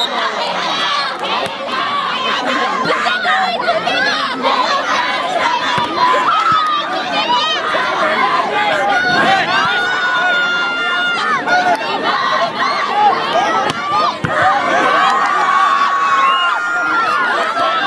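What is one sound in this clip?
A large crowd outdoors shouts and cheers loudly.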